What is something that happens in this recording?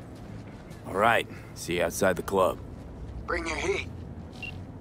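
A man talks through a phone call.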